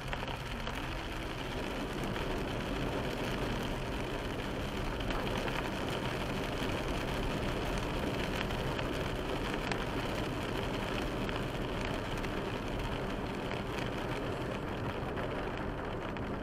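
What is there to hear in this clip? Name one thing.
Rain drums steadily on a car's windscreen.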